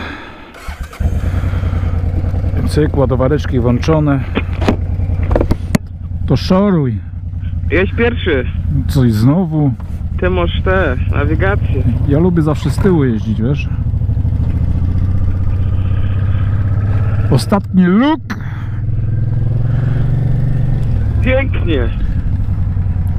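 A motorcycle engine starts and runs with a steady low rumble.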